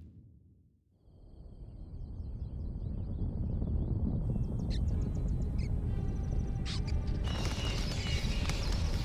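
Wind blows steadily across open land.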